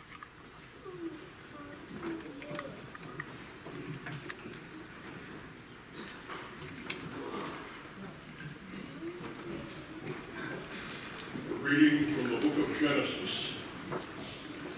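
An audience murmurs and chatters quietly in a large hall.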